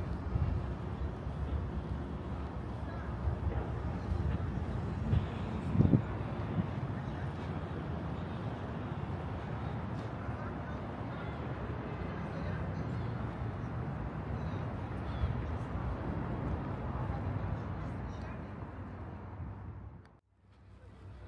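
Wind rumbles across a microphone outdoors.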